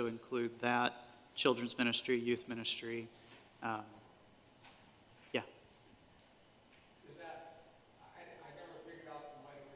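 A middle-aged man speaks calmly in a room with some echo.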